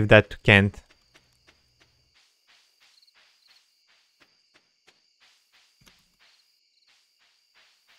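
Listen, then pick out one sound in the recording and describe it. Soft footsteps patter quickly in a video game.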